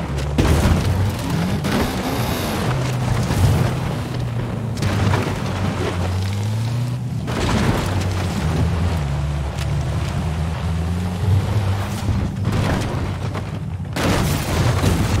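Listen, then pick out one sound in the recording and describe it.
A sports car engine revs and roars, rising and falling in pitch.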